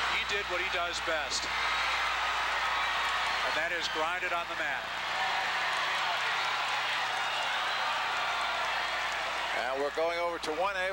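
A large crowd roars and cheers in a big echoing hall.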